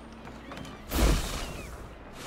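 A rush of air sweeps past as a figure leaps from a roof.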